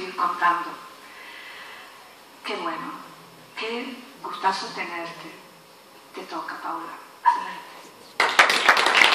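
A woman speaks calmly through a microphone and loudspeakers in an echoing hall.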